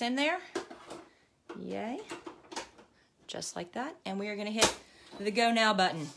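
A plastic embroidery hoop clicks into place on a machine.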